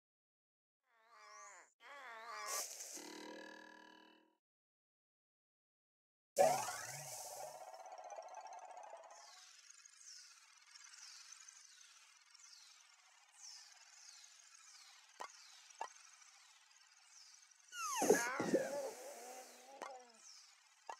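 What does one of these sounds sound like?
Playful cartoon sound effects chime and whoosh.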